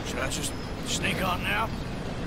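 A man asks a short question.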